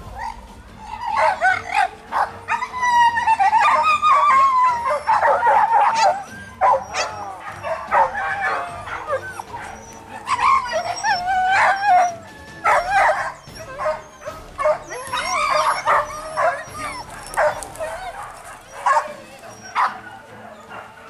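Dogs yelp and whine excitedly close by.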